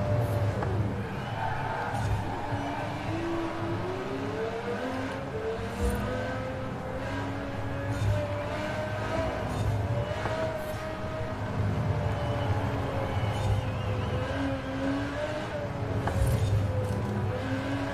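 A race car engine roars and revs up and down through gear changes.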